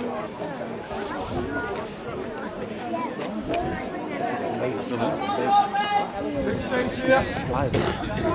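Young women shout and call to each other across an open field outdoors.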